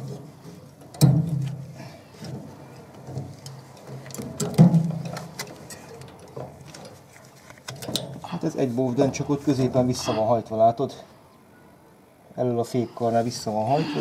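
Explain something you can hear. Pliers click and scrape against metal wire.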